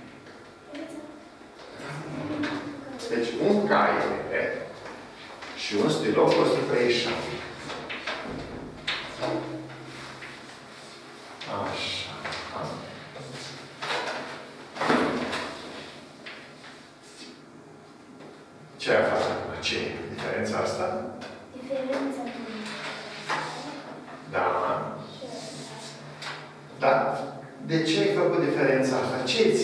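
An elderly man talks calmly.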